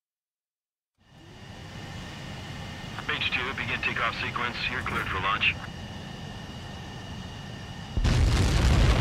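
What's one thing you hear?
A twin-engine jet fighter idles with a whining hum.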